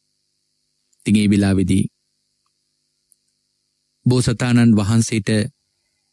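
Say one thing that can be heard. A man speaks calmly in a low voice, in short phrases with pauses.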